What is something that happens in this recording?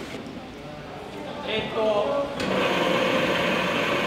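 Soybeans tumble from a tub into a machine's hopper.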